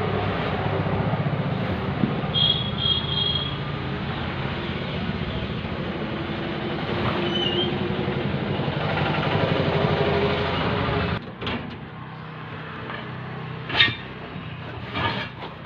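A rubber inner tube rubs and squeaks against a tyre as it is pulled out.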